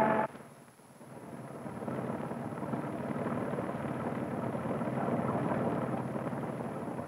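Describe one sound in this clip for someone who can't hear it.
A heavy truck engine rumbles steadily as the truck drives slowly forward.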